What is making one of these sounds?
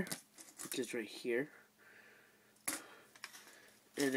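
Plastic toy pieces clack as a hand sets them down.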